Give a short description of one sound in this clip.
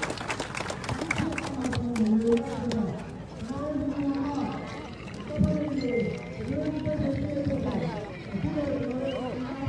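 A crowd chants loudly in unison outdoors.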